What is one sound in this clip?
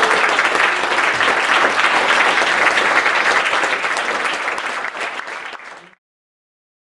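An audience applauds loudly in a hall, then the clapping fades out.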